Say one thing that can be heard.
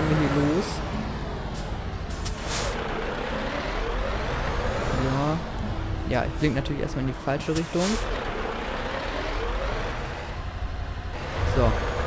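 A heavy truck engine rumbles steadily at low speed.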